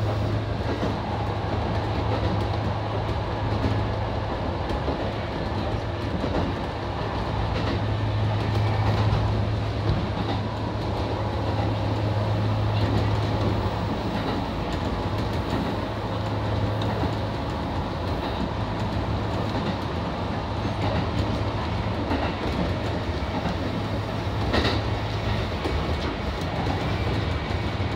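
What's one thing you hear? A train's motor hums steadily from inside the cab.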